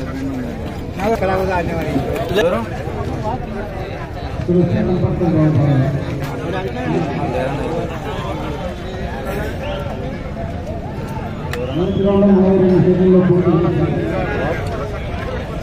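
Men nearby talk loudly and call out.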